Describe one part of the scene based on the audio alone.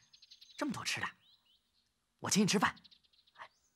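A young man speaks cheerfully and coaxingly, close by.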